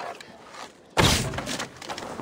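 A wooden door bursts open with a heavy crash.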